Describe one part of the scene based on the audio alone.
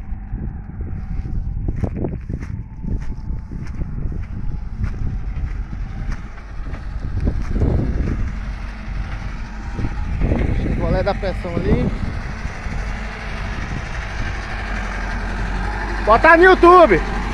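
A backhoe's diesel engine rumbles steadily nearby.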